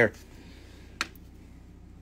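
A small stone taps onto a hard tray.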